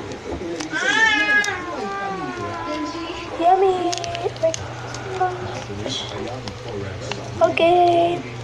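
A young girl sings close into a microphone.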